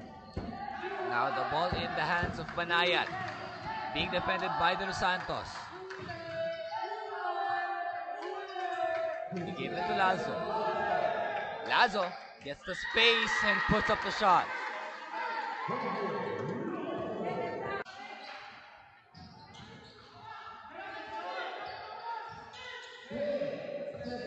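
A crowd of spectators shouts and cheers in an echoing gym.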